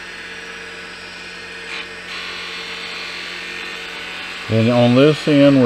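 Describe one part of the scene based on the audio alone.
A chisel scrapes against spinning wood.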